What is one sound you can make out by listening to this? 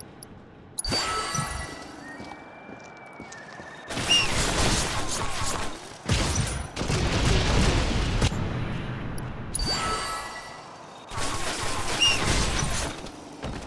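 Weapons blast and crash in bursts of loud fighting.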